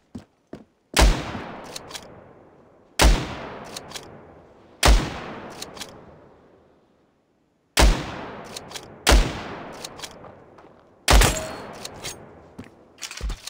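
Sniper rifle shots boom loudly and echo away.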